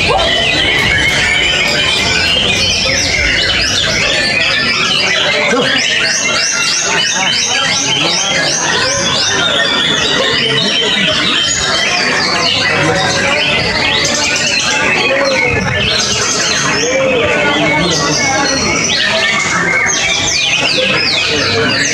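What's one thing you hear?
A caged songbird sings loud, fast, chattering trills close by.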